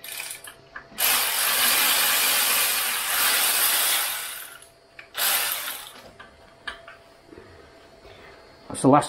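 Metal parts clink and tap.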